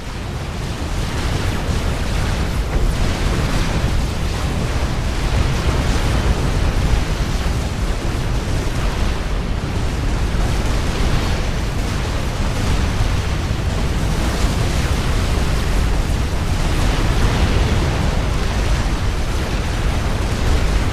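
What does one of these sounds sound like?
Laser weapons fire and explosions rumble in a battle.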